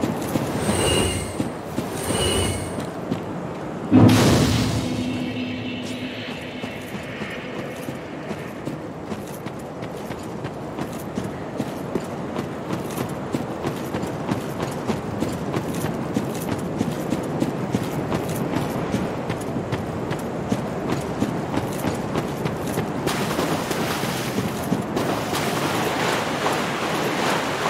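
Heavy armored footsteps tramp along at a steady pace.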